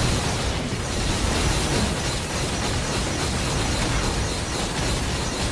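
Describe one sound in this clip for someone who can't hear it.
Rapid sword slashes and hits clash over and over.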